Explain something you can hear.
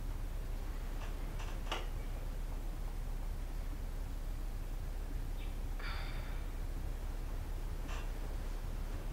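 A duvet rustles.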